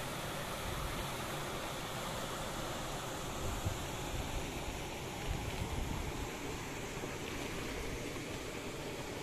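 Water rushes steadily through sluice gates and churns along a channel.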